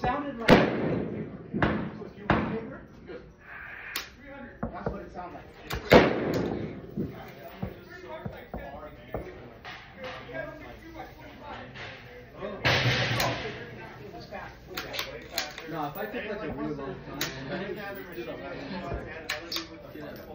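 A rifle fires sharp shots now and then.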